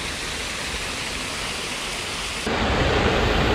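Water splashes down a small waterfall.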